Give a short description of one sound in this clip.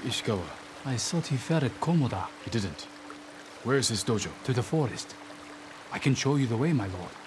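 An older man answers politely, close by.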